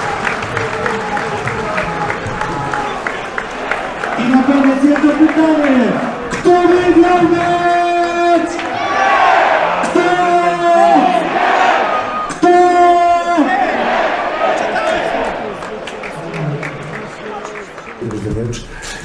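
A large crowd chants and sings loudly outdoors.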